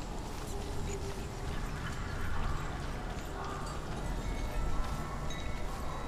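Footsteps crunch over dirt and leaves.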